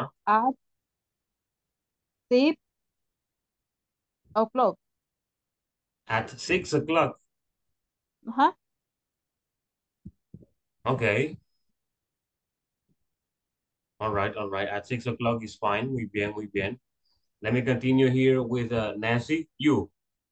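A young man speaks calmly through an online call, in short bursts with pauses.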